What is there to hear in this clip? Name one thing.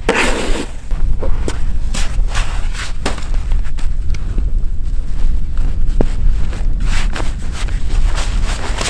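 Boots crunch on snow and ice.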